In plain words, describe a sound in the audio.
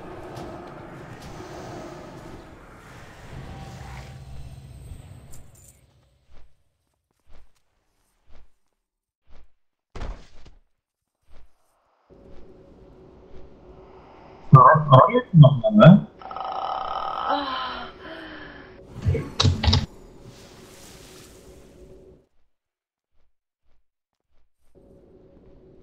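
Magic spells burst and crackle in a fantasy battle.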